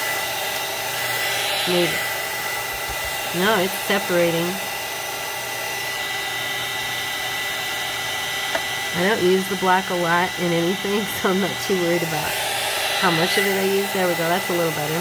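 A heat gun blows with a steady whirring hiss.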